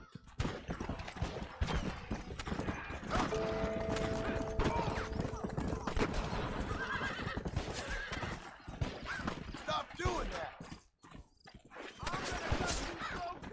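Horse hooves gallop steadily over dry ground.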